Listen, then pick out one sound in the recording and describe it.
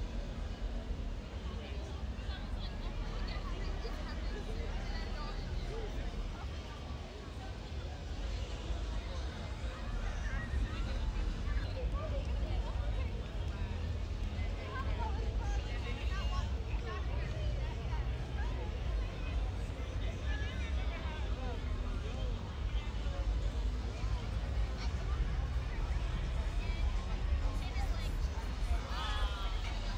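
A crowd of people chatters on a busy street outdoors.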